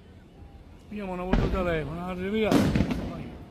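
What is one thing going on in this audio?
Fireworks whistle as they shoot upward.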